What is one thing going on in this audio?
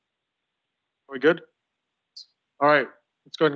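An adult man speaks briefly into a microphone.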